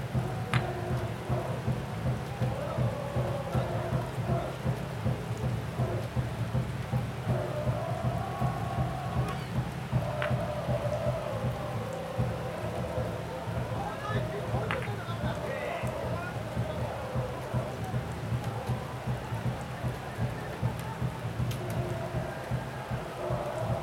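Rain falls steadily outdoors, pattering on umbrellas.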